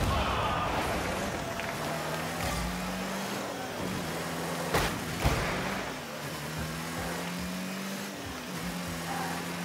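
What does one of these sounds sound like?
A game car's engine hums steadily, rising and falling in pitch.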